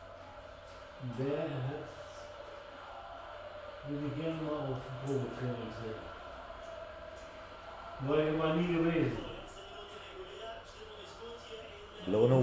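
A man speaks calmly into a nearby microphone, in short bursts.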